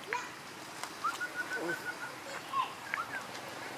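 A young monkey squeaks in short high calls.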